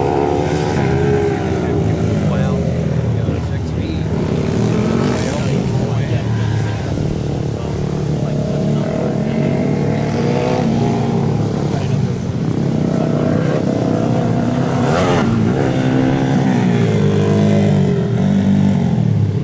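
A small dirt bike engine buzzes and revs up and down, close by.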